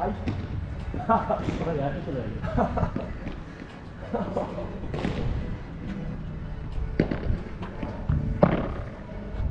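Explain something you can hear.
Padel rackets strike a ball back and forth outdoors.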